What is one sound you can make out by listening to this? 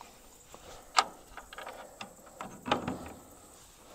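A wooden lid knocks and clatters shut.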